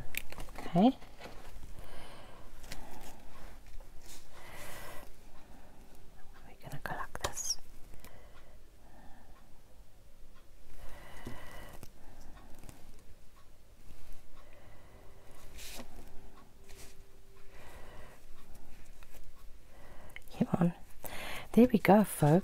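Paper cards rustle and slide across a table.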